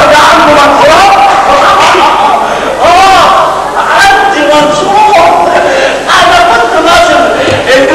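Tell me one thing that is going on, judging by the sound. A large chorus of men and women sings loudly on a stage, heard from a distance in a big hall.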